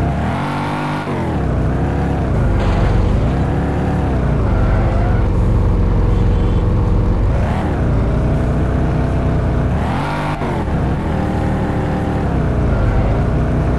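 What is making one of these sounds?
A sports car engine revs up and down as the car speeds along.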